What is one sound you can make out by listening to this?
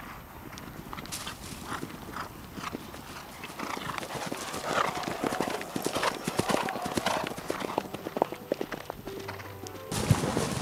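Horses' hooves thud on soft ground as they canter close by.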